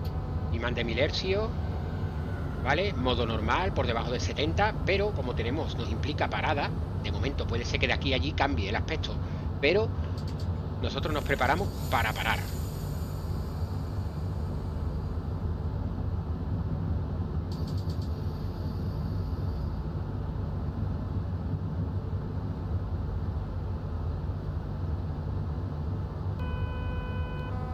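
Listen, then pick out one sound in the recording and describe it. A train engine hums and rumbles steadily while rolling along the track.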